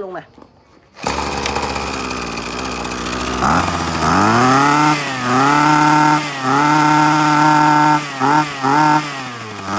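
A small petrol engine starts up and runs loudly close by.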